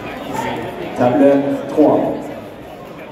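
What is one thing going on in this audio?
A young man shouts loudly in encouragement.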